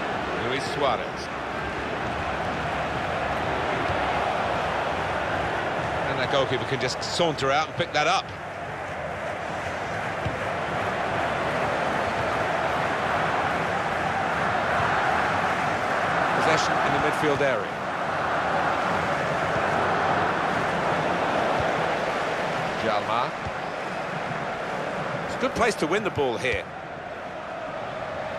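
A stadium crowd roars and murmurs.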